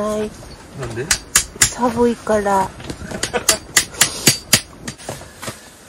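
Metal taps and clinks against ice.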